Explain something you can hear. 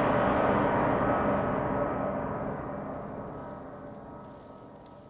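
A man sings a long held note in a large hall, slowly fading away.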